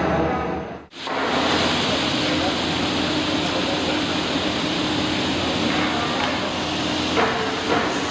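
A table saw whirs steadily while cutting wood.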